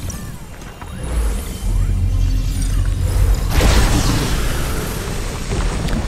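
A magical whoosh swells and fades.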